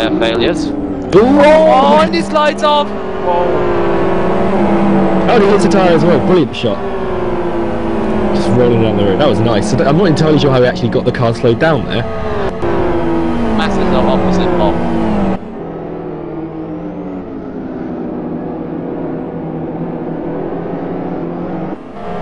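Several racing car engines roar and rise and fall in pitch as the cars race past.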